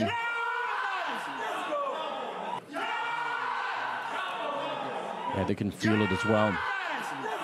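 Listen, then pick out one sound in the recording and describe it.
A young man shouts excitedly into a headset microphone.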